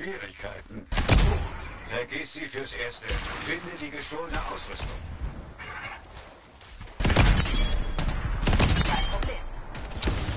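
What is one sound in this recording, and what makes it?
Energy weapons fire in sharp, rapid bursts.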